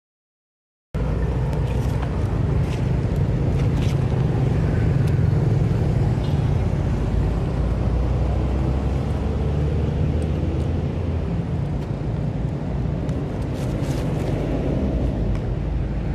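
Traffic rumbles past on a road some distance away.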